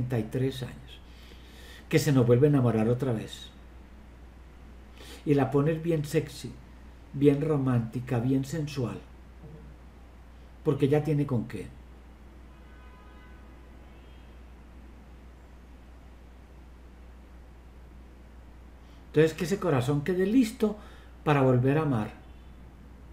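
An elderly man speaks calmly in short bursts over an online call.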